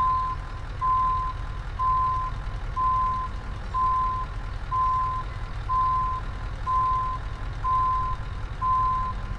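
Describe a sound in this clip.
A truck's reversing alarm beeps at an even, steady pace.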